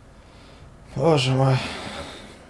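A young man speaks loudly into a microphone, close up.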